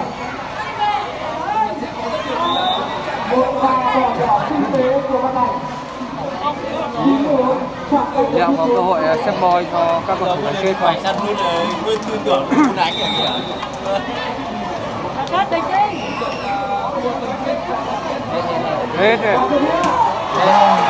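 A large outdoor crowd cheers and shouts loudly throughout.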